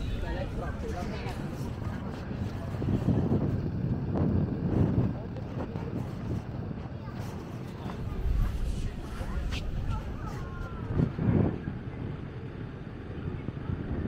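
Wind rumbles outdoors, gusting at times.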